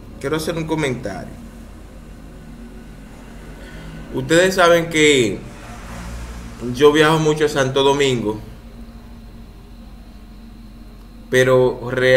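A man speaks close to a microphone in short, earnest phrases with pauses between them.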